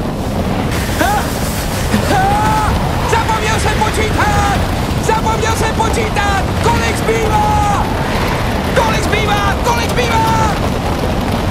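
A young man yells with excitement close by.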